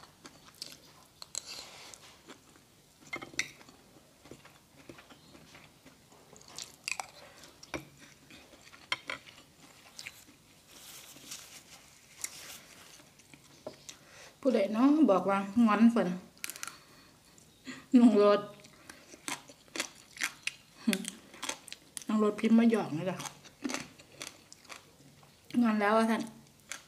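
A woman chews food with smacking sounds close to a microphone.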